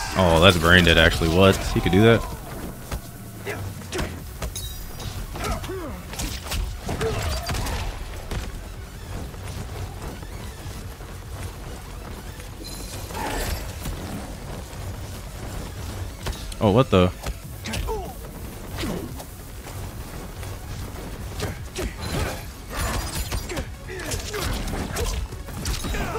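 A man speaks into a microphone, close up, with animation.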